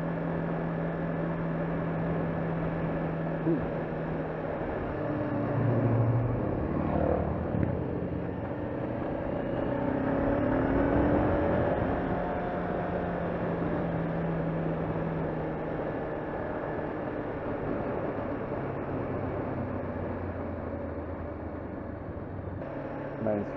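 Wind rushes loudly past a rider's helmet.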